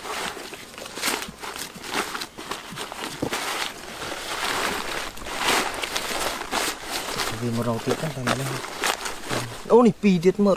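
Dry leaves rustle and crackle as hands rummage through them.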